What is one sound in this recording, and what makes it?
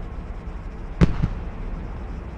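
A loud explosion booms once.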